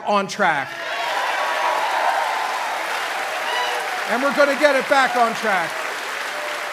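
People in a crowd cheer and whoop loudly.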